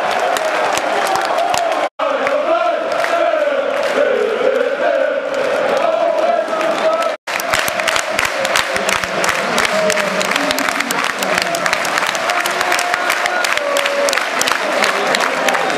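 A large crowd claps in rhythm.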